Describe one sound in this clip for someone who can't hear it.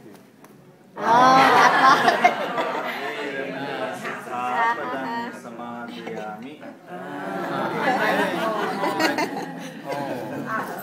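A man talks cheerfully close by.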